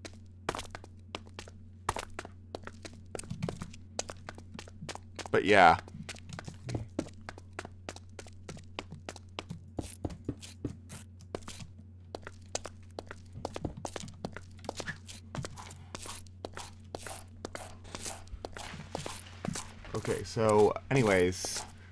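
A pickaxe chips rapidly at stone blocks.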